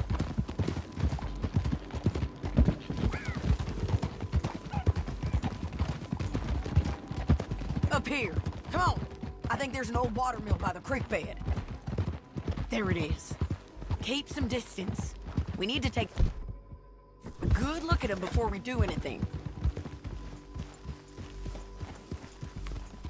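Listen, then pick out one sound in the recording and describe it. Horses' hooves thud quickly on a dirt track.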